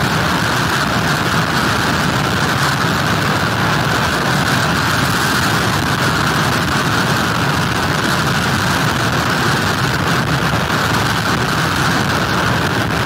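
Strong wind blows loudly outdoors.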